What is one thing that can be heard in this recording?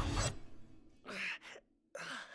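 A young man speaks in a strained voice.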